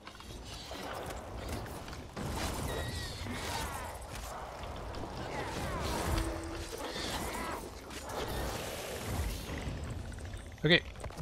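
Blades clash and slash in a fast fight.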